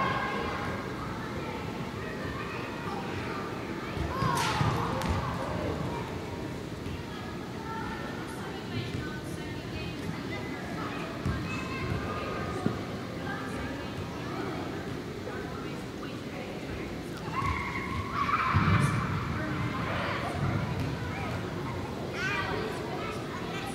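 Young women shout and call to each other across a large echoing indoor hall.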